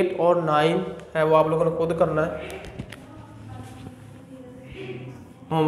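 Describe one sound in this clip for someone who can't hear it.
A man speaks clearly and steadily, as if teaching, close to the microphone.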